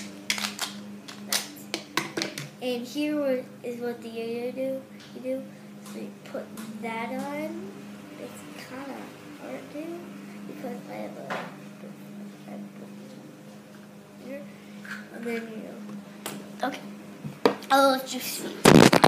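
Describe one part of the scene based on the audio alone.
A young boy talks close to a microphone.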